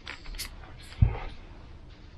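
A board knocks down onto a surface with a dull thump.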